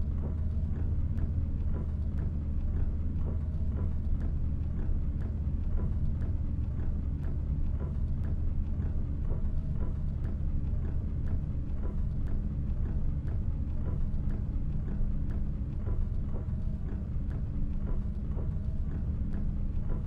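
Raindrops patter against a windscreen.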